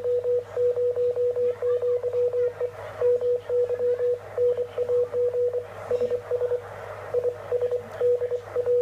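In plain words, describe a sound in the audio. A radio receiver hisses softly with static.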